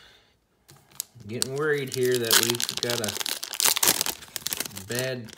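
A foil wrapper crinkles and rustles as hands tear it open.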